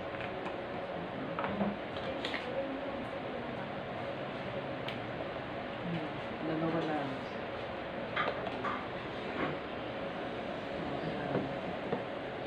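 Plastic bottles knock and rattle in hands.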